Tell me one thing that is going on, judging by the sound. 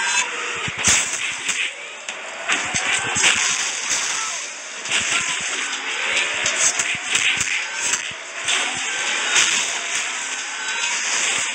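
Sci-fi energy beams whoosh and zap.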